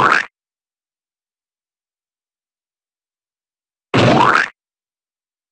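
A short, squelching game sound effect with a quick rising pitch plays as a bug is squashed.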